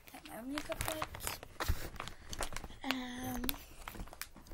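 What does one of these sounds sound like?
A young girl sings or calls out a drawn-out note close to a microphone.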